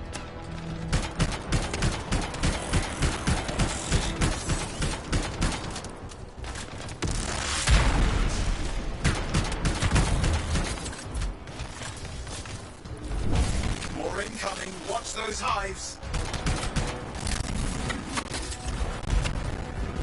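Video game gunfire rattles in rapid bursts.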